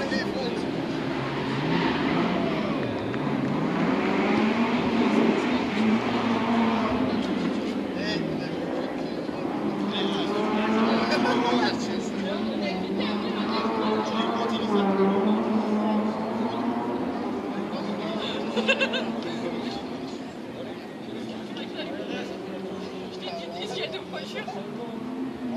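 A crowd of spectators chatters outdoors at a distance.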